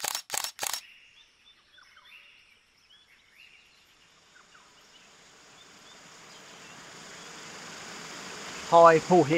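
A small waterfall splashes steadily over rocks.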